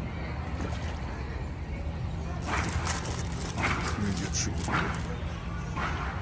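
Alligators splash and thrash in shallow water close by.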